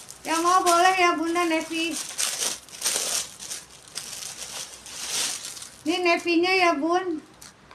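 A woman speaks close by in a lively, sing-song voice.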